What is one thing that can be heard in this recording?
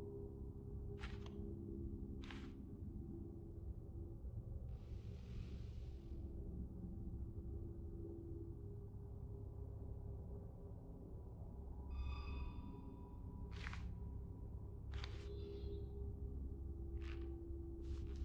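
Short electronic menu clicks sound now and then as a selection moves.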